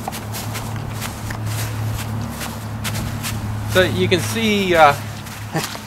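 Footsteps crunch on dry grass.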